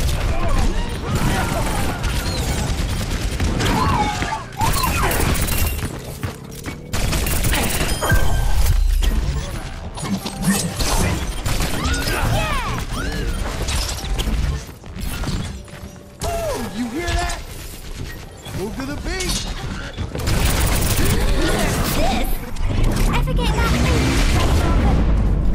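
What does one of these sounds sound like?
Pistols fire in rapid bursts with sharp electronic zaps.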